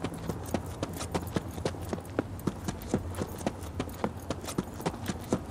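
Quick footsteps run steadily over hard ground.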